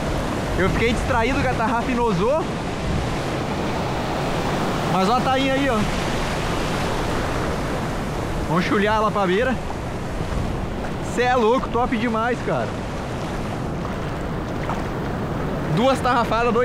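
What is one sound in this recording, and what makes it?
Waves wash and foam close by.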